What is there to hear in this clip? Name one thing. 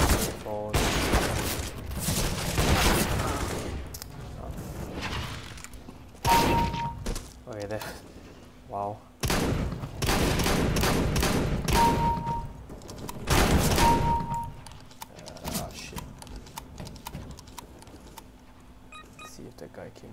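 Gunshots bang loudly in quick bursts.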